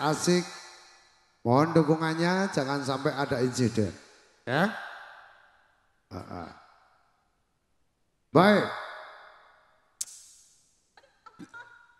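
A man sings through loudspeakers in short phrases with a heavy echo.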